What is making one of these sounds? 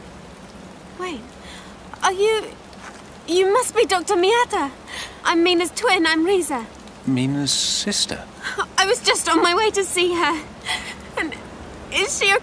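A young woman speaks anxiously nearby.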